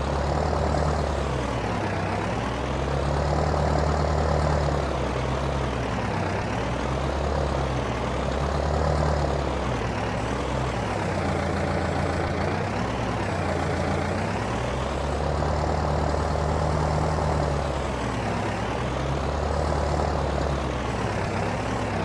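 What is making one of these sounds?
A loader's hydraulics whine as the arms lift and lower.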